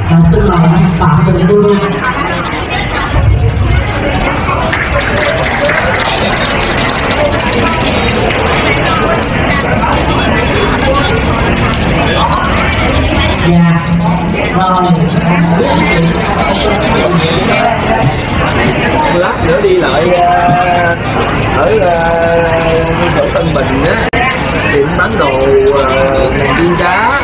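Many people chatter and talk together in a busy room.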